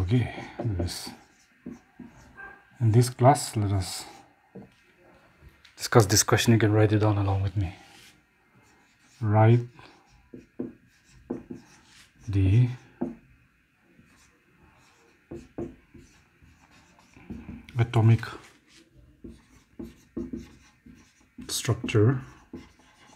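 A middle-aged man speaks clearly and slowly nearby, as if teaching.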